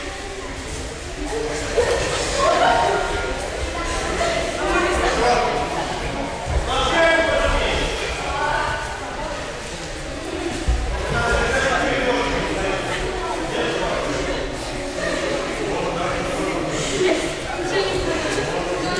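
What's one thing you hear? A crowd of children and adults chatter in a large echoing hall.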